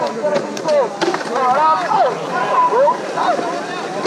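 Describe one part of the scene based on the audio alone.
A skateboard smacks down on concrete.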